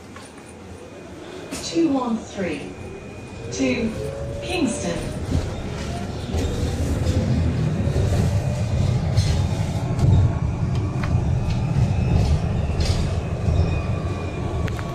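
A bus rumbles and hums as it drives along a road.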